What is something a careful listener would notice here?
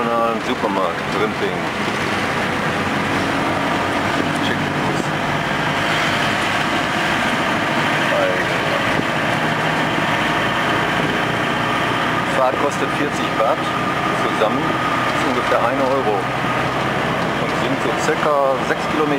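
An engine rumbles steadily as a vehicle rides along a street.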